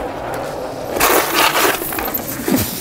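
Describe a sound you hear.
Bicycle tyres crunch over loose straw.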